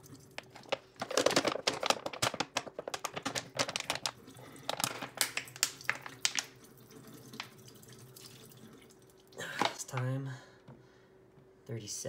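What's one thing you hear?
A bottle brush scrubs rapidly inside a plastic bottle.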